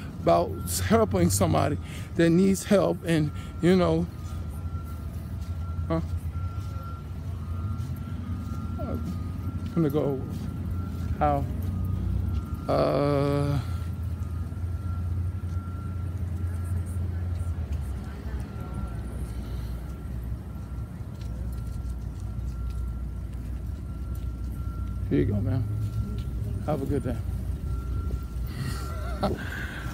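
A man talks with animation close to a phone microphone.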